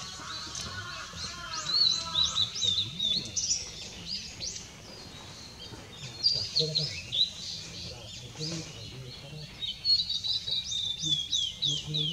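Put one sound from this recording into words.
A blue-and-white flycatcher sings.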